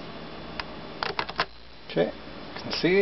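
A plastic telephone handset clicks as it is set down in its cradle.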